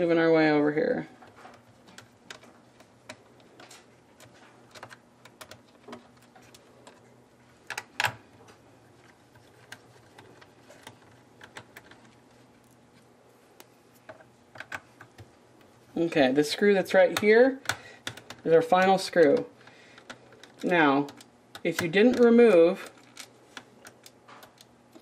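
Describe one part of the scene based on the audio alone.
Small plastic parts click and snap as fingers pry at a casing.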